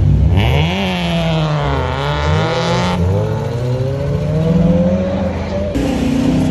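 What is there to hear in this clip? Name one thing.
A car engine revs loudly with sharp rises and falls as it pulls away close by.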